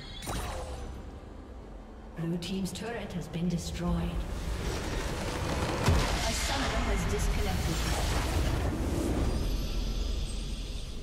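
Magical blasts whoosh and crackle in quick bursts.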